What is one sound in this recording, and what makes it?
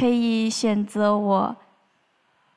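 A young woman speaks into a handheld microphone.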